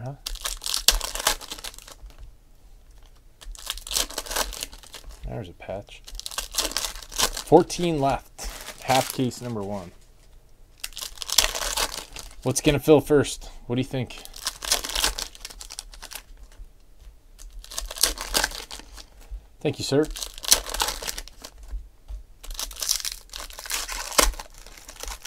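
Foil wrappers crinkle and tear as card packs are ripped open.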